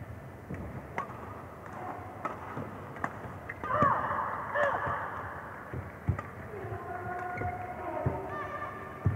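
A shuttlecock is struck sharply by rackets in a fast rally.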